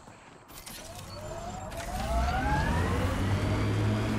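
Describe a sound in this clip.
A vehicle engine revs up and rises in pitch.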